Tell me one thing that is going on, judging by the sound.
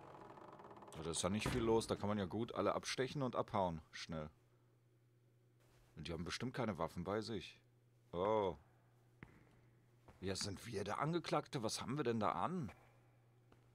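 An elderly man speaks slowly and solemnly.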